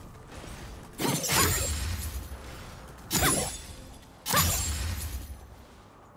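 Game spells burst and crackle loudly in a fight.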